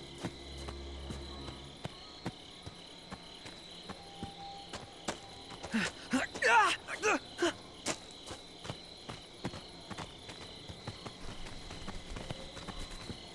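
Footsteps crunch steadily over gravel.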